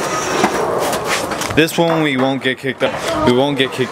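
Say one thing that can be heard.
A skateboard clacks on steps.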